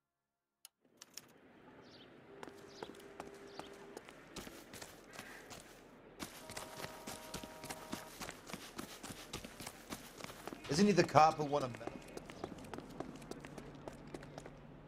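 Footsteps hurry along pavement and grass.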